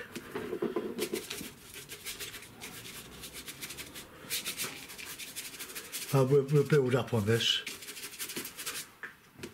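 A stiff brush scrubs and scratches rapidly on paper.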